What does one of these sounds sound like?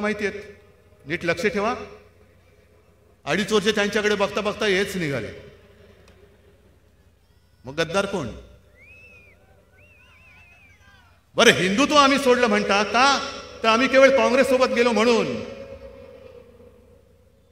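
A middle-aged man speaks forcefully into a microphone with pauses, his voice ringing out over loudspeakers outdoors.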